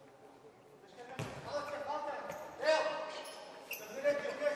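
Sneakers squeak sharply on a hard floor in an echoing hall.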